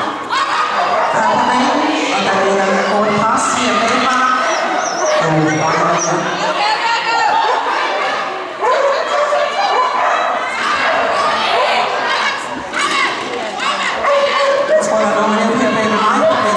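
A man calls out commands to a dog in a large echoing hall.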